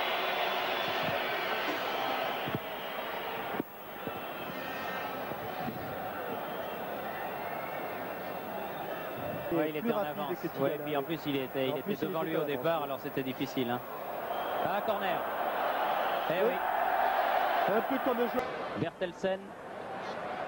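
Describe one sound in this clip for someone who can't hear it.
A large stadium crowd roars and cheers, swelling loudly.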